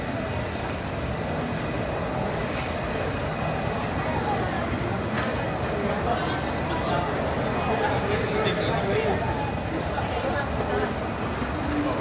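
A crowd of men and women chatters nearby in an echoing hall.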